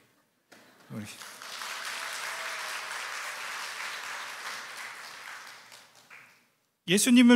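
A group of people applauds.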